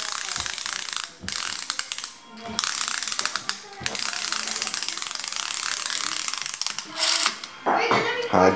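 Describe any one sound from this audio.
A plastic toy rattles and scrapes on a wooden board.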